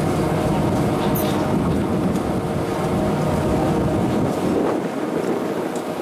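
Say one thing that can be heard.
Chairlift seats clatter as they swing around the turn.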